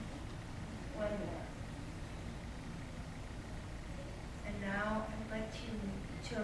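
A woman speaks to a room, her voice slightly distant.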